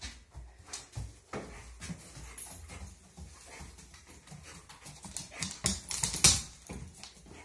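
A dog's paws patter softly on a foam mat.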